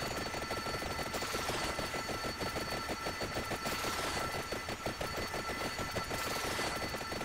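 Fiery whooshes sweep past repeatedly.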